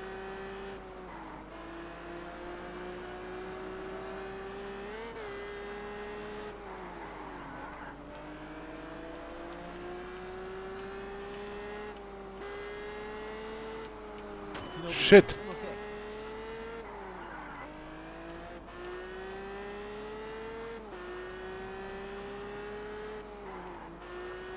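A car engine hums and revs up and down through gear changes.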